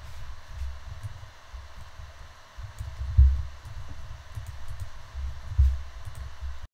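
Stone blocks thud dully as they are placed.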